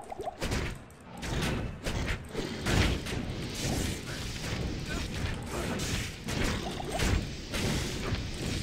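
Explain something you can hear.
Magic blasts crackle and whoosh in quick bursts.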